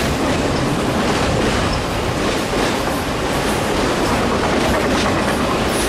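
A long freight train rumbles past close by, its wheels clattering on the rails.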